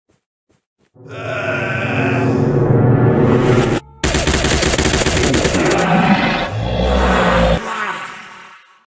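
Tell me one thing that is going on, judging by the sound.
Rapid rifle gunfire rattles loudly.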